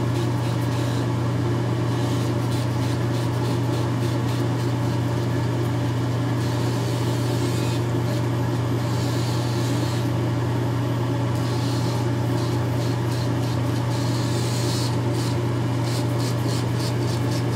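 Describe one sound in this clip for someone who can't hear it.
A razor scrapes across stubble in short, quick strokes.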